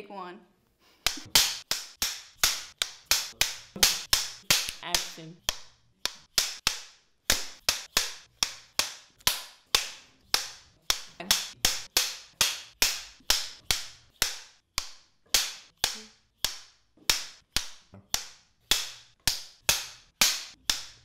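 Clapperboards snap shut again and again in quick succession.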